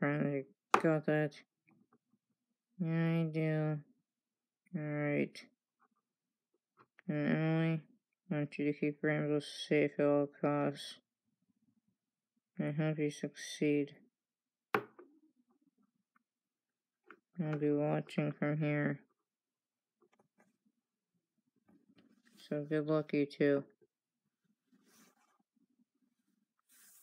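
Small plastic toy figures tap and slide on a wooden surface.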